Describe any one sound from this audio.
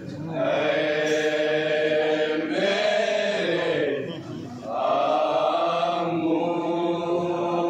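A crowd of men chants together in a loud, sustained lament.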